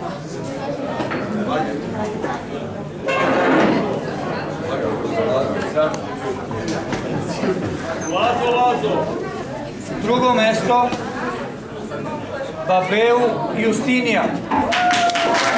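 A middle-aged man announces to a room.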